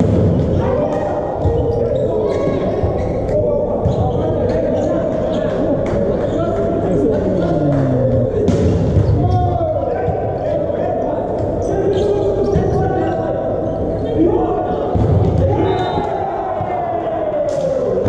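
A volleyball is struck by hands in a large echoing hall.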